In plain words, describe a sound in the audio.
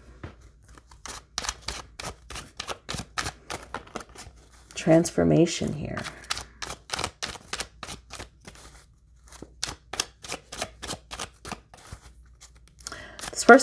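A deck of cards is shuffled with rapid, crisp flicks.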